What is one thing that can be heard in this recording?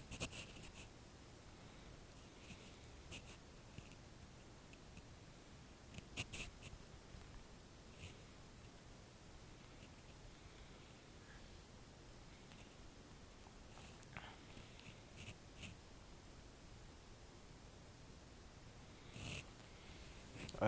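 A phone keyboard clicks softly as keys are tapped.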